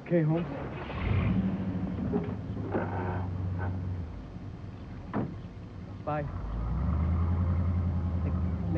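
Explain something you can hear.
A truck engine idles with a low rumble.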